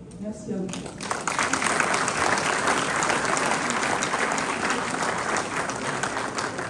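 A small group of people applauds in an echoing hall.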